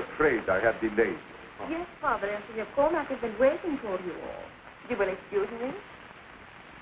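A woman speaks animatedly, close by.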